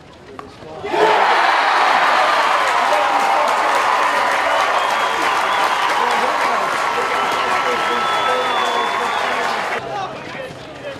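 A group of young men cheer and shout loudly outdoors.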